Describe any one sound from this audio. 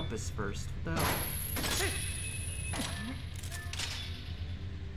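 A grappling hook shoots out on a rattling chain and clanks against metal.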